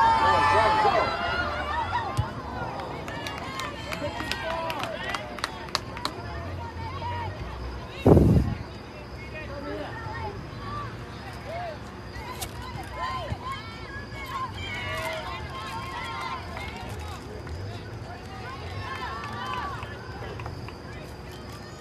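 Young women shout and call to each other across an open outdoor field.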